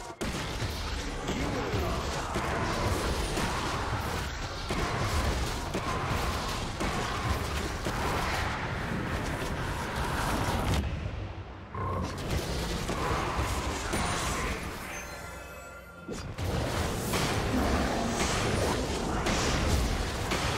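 Magic blasts whoosh and crackle in a fast video game battle.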